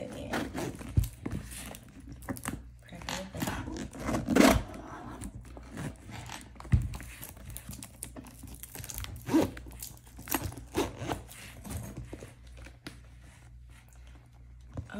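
Fingers tap and rustle against a plastic case.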